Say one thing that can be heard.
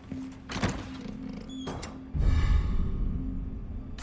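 A wooden crate creaks open.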